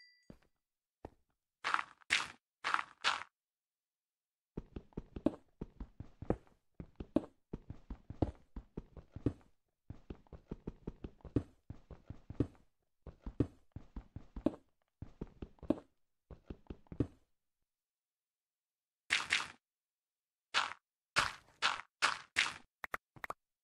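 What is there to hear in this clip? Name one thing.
Blocks of dirt are set down with soft thuds.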